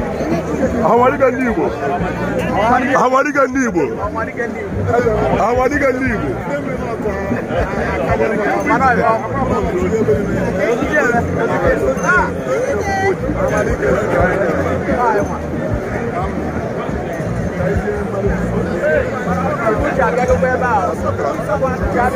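Men talk and greet each other loudly in a close, lively crowd.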